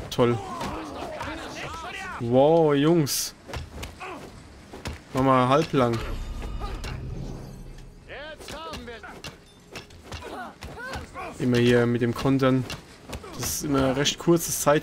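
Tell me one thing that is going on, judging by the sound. Punches and blows land with dull thuds in a fist fight.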